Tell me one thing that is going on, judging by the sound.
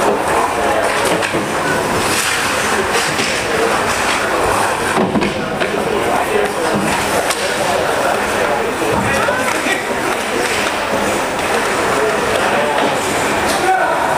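A crowd chatters throughout a large echoing hall.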